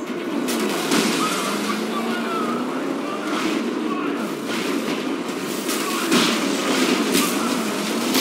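Metal vehicles crash into each other with loud bangs.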